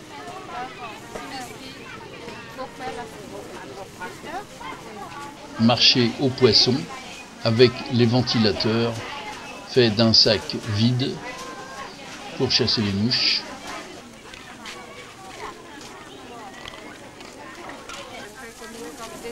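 People chatter faintly in the background.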